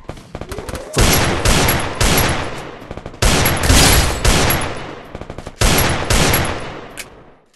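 Gunshots boom loudly, each followed by a long echoing ring.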